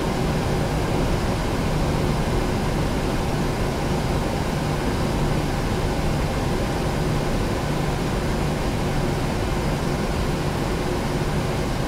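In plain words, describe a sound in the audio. Jet engines hum steadily while an airliner taxis.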